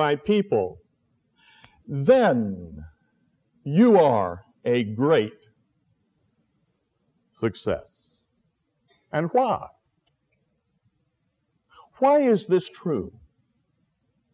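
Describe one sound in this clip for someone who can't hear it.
An elderly man speaks calmly and slowly, with long pauses.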